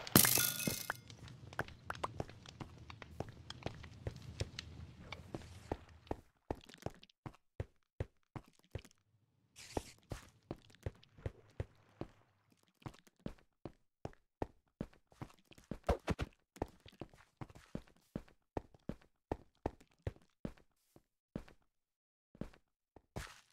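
Footsteps tread steadily on stone, echoing faintly.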